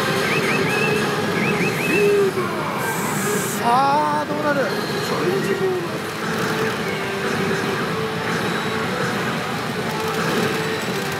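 Pachinko machines chime and play electronic music in a noisy hall.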